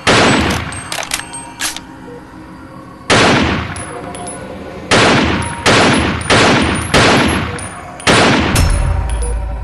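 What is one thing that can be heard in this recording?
Loud rifle shots ring out one after another, each trailing off in an echo.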